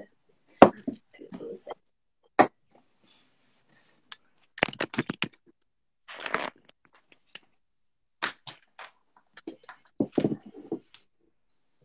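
Small objects click and tap on a table.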